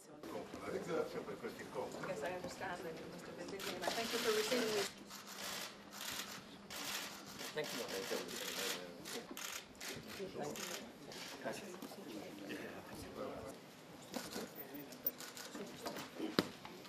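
Men murmur in the background.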